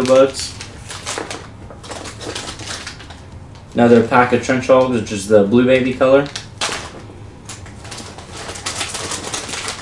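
Plastic packaging crinkles and rustles.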